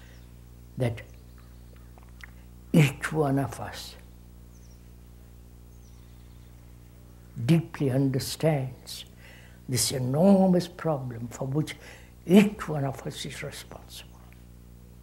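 An elderly man speaks slowly and thoughtfully into a close microphone, with long pauses.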